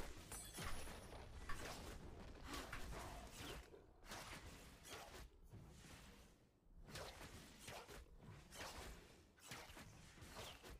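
Video game spell effects whoosh and clash.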